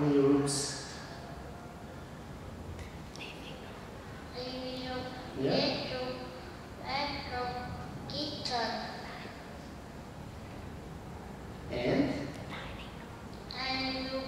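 A young girl answers in a small voice into a microphone.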